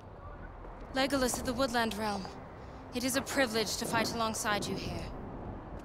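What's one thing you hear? A young woman speaks firmly.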